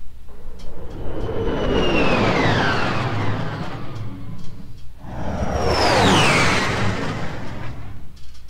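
A spaceship whooshes past with a falling roar.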